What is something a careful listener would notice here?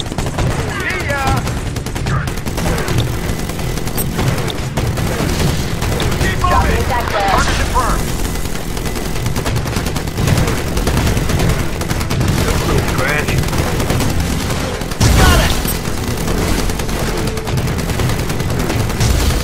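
Rapid gunfire rattles on and on.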